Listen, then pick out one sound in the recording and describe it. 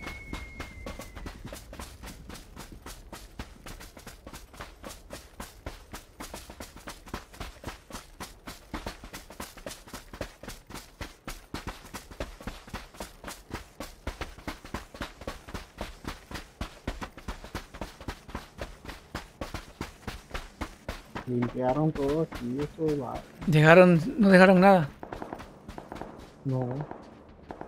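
Footsteps run quickly and steadily over ground.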